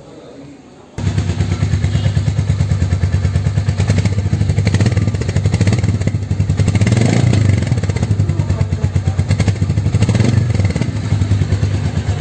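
A motorcycle engine idles nearby with a deep, rapid throb that suddenly gets much louder.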